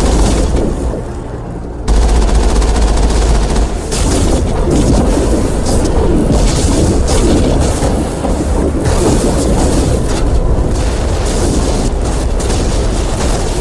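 A heavy vehicle engine rumbles as it drives over rough ground.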